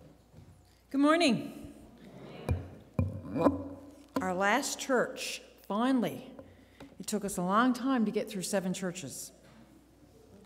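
A woman reads out calmly into a microphone in a large room.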